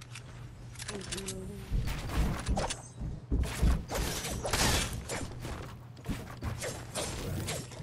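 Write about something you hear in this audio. Wooden building pieces snap into place with quick, repeated clunks.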